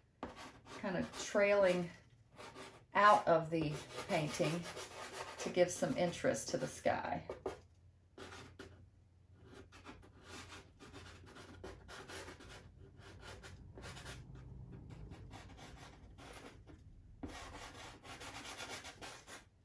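Pastel scratches and rubs softly against a drawing surface.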